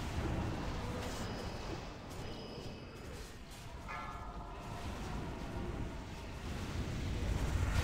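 Spell effects and combat sounds from a fantasy game clash and whoosh.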